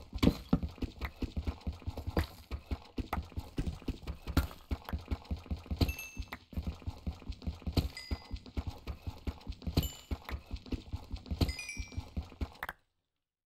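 A pickaxe chips rapidly at stone blocks.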